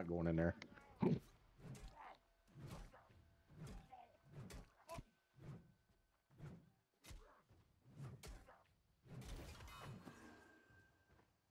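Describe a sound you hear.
Weapon blows thud and clang in a fight.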